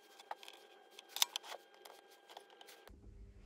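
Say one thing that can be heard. Metal engine parts clink and tap as they are handled.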